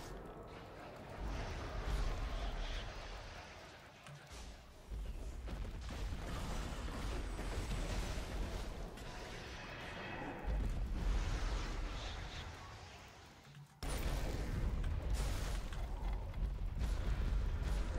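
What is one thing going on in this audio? Game battle effects whoosh and clash.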